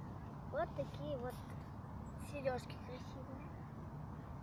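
A young girl talks close by in a high, lively voice.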